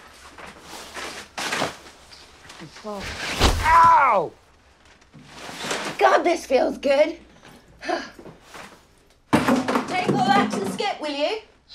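A plastic tarp crinkles and rustles loudly.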